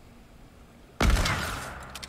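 A rifle fires with a loud crack.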